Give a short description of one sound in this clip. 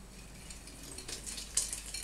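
Liquid pours into a bowl.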